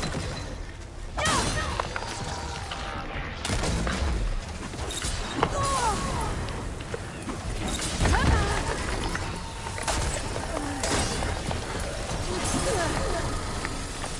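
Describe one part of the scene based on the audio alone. Mechanical creatures screech and roar.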